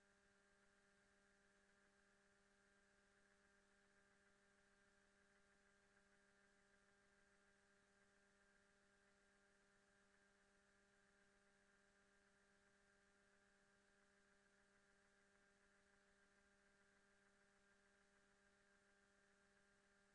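A spaceship engine hums steadily.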